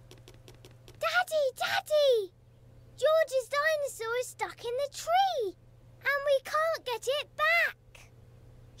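A young girl speaks excitedly in a high voice.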